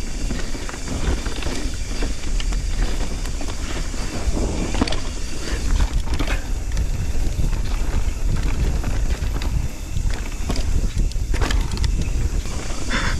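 A bicycle chain and frame rattle over bumps.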